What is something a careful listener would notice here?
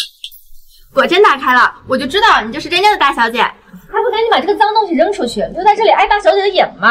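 A young woman speaks sharply and scornfully.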